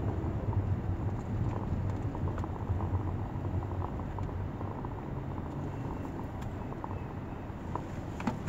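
A jeepney engine rumbles close ahead.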